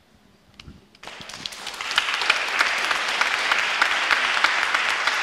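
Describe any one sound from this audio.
An audience claps in applause.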